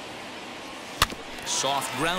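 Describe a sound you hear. A bat cracks sharply against a ball.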